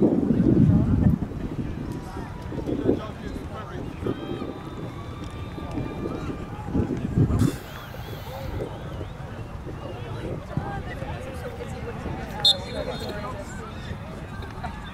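Distant players call out to each other across an open field.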